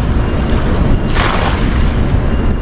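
A cast net splashes into the water.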